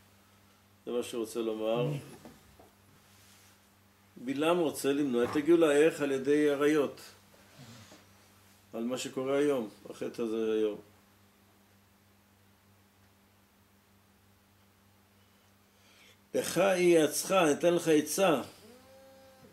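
An elderly man speaks calmly and close by, in bursts with pauses.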